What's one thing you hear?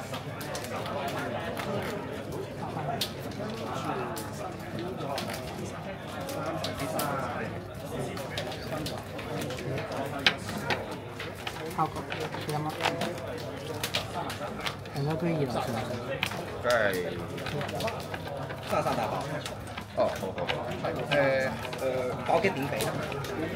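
Playing cards slap and slide on a table.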